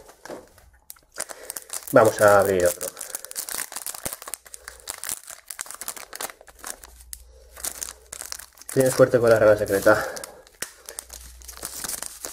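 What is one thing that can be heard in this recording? A foil booster pack crinkles as hands tear it open.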